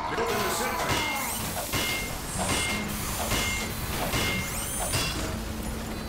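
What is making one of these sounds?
A wrench clangs repeatedly against a metal machine.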